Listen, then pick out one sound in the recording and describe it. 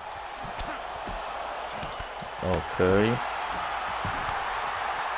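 Kicks and punches land with dull, heavy thuds.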